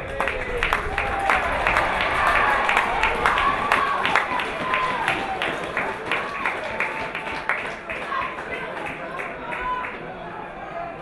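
Young women cheer and shout in celebration outdoors.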